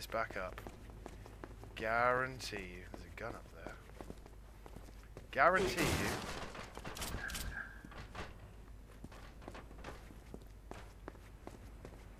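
Footsteps thud and scuff on stairs.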